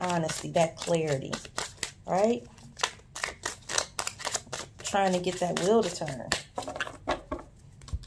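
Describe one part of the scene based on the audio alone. Playing cards riffle and flutter as they are shuffled by hand.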